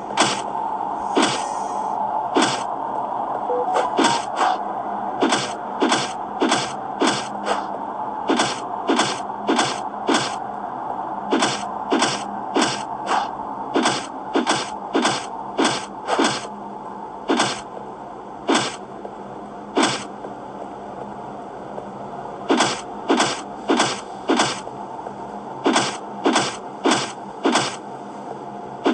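Game sound effects play with repeated sharp bursts of blasts.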